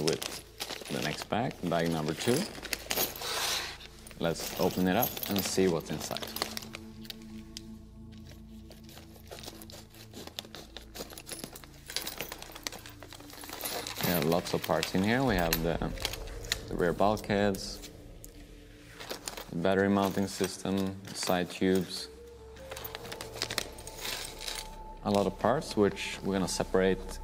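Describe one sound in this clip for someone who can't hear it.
A plastic bag crinkles and rustles in someone's hands.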